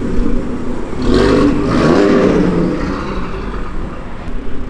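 A car engine roars loudly as it accelerates away and fades.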